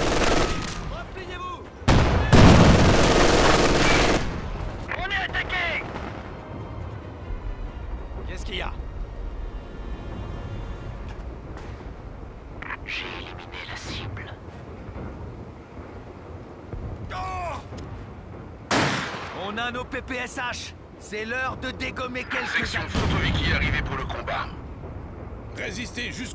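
Gunfire and explosions rumble in the distance.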